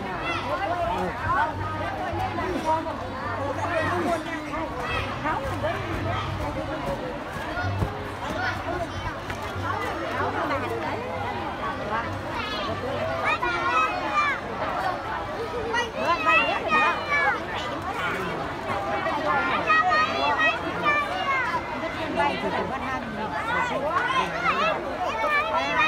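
A large crowd of children chatters and calls out loudly outdoors.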